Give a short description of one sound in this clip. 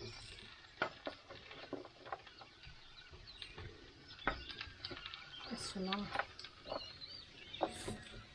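A spatula scrapes and clatters against a bowl as vegetables are tipped into a pan.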